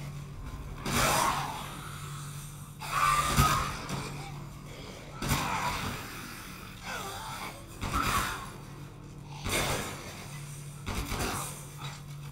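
Gunshots fire loudly, one after another, in a hard echoing room.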